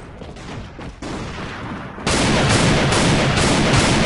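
A rifle fires several sharp shots.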